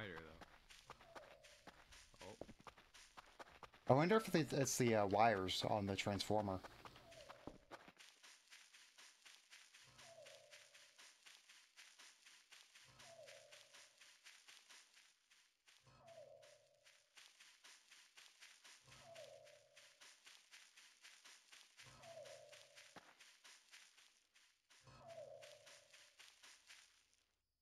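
Footsteps crunch quickly on gravel and grass.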